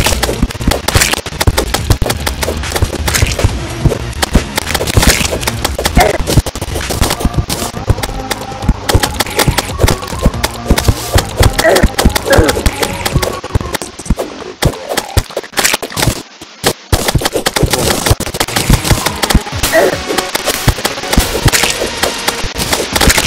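Rapid game sound effects of thrown weapons hitting a monster click and pop.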